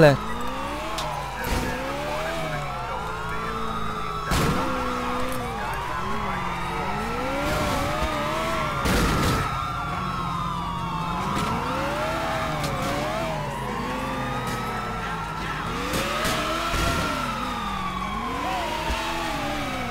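Police sirens wail up and down nearby.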